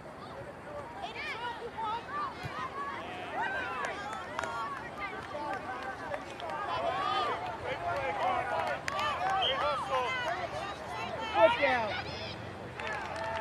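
Young soccer players shout outdoors across an open field.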